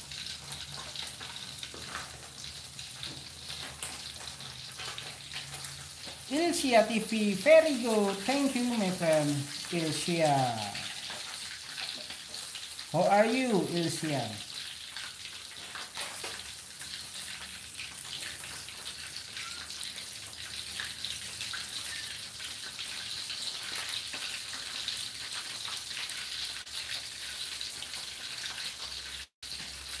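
Oil sizzles and crackles steadily in a hot pan.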